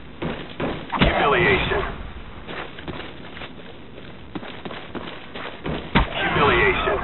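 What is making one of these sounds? A knife stabs with a sharp, heavy thud.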